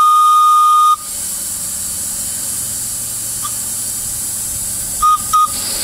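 A model steam locomotive hisses steadily.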